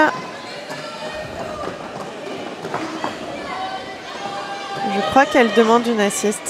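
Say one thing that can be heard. Roller skate wheels roll and squeak on a hard floor in an echoing hall.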